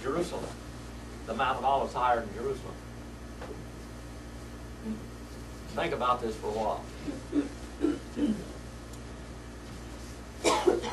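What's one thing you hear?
An older man speaks calmly and slowly through a microphone in a room, with pauses between phrases.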